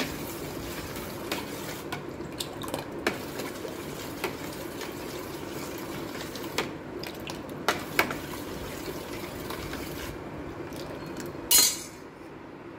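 A metal ladle scrapes and clinks against a metal bowl.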